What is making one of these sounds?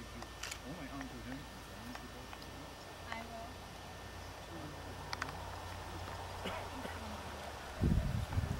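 An elderly man speaks calmly outdoors.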